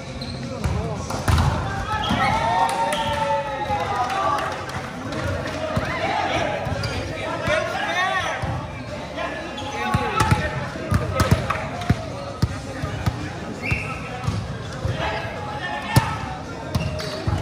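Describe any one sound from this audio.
Men and women players shout and call out across the court.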